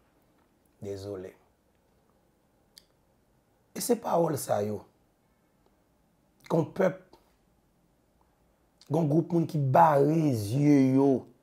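A young man speaks close to a clip-on microphone, pausing between phrases.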